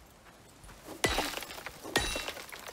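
A pick strikes rock with sharp knocks.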